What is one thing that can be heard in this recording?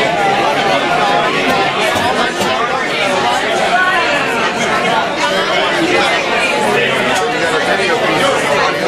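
Hand drums are tapped in a steady beat.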